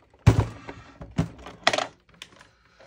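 Hands knock and click against a plastic sewing machine.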